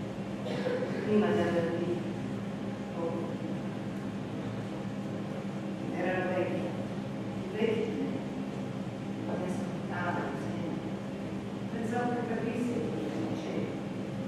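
A man speaks theatrically, heard from a distance in a hall.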